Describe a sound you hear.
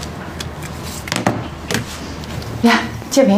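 A young woman speaks quietly on a phone.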